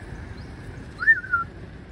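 A cat meows briefly nearby.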